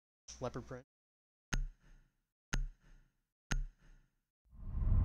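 A countdown timer beeps sharply once each second.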